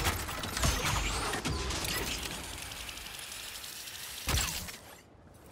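A zipline pulley whirs along a cable.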